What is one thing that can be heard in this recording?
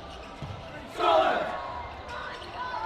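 A group of young men shout a cheer together in a large echoing hall.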